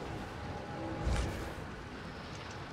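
A video game laser beam effect zaps.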